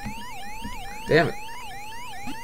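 A short electronic blip sounds.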